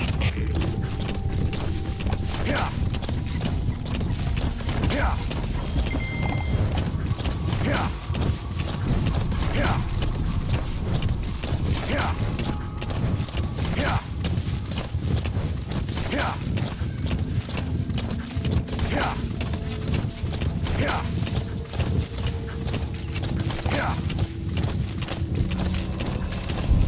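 Horse hooves gallop steadily over dry ground.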